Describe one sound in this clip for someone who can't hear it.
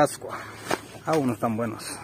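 Leaves rustle as a hand brushes a branch.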